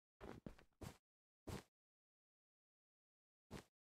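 Blocks are set down one after another with short, dull thuds.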